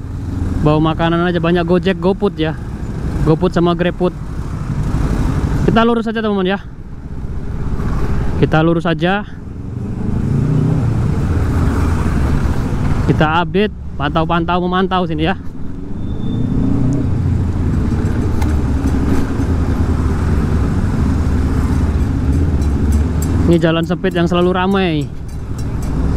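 Motor scooter engines hum and putter close by.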